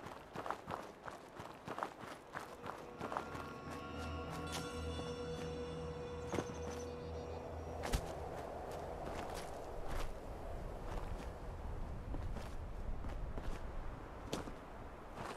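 Footsteps scrape and tap on rocky ground.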